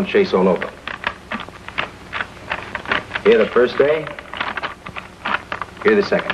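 Paper rustles as it is unfolded.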